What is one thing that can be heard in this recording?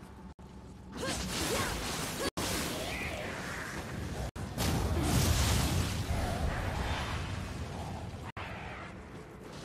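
Magical blasts whoosh and burst loudly.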